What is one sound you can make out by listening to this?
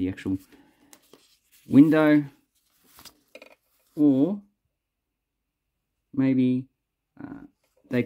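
Plastic banknotes crinkle softly as they are handled.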